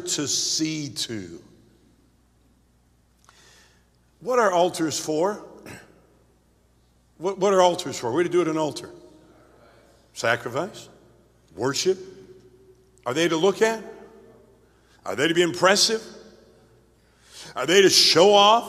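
An older man preaches forcefully into a microphone in short bursts, echoing through a large hall.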